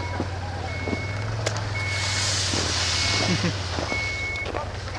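A snowmobile engine runs.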